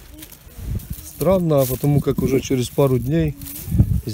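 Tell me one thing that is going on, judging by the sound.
A knife cuts through a mushroom stem.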